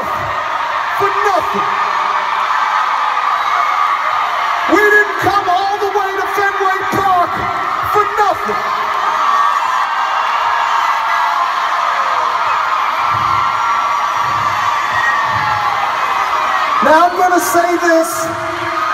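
Young women in the crowd shriek with high-pitched screams.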